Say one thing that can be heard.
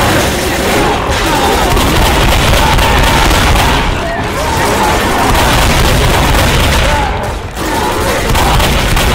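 A shotgun fires repeated loud blasts.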